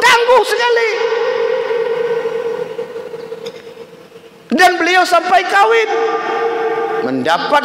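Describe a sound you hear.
A man preaches loudly into a microphone, drawing out his words in a chanting tone.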